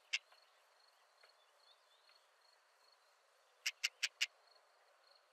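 A small bird gives a few sharp, harsh calls.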